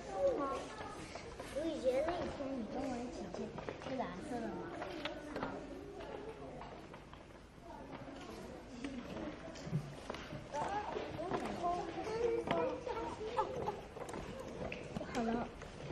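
Young children chatter and talk excitedly nearby.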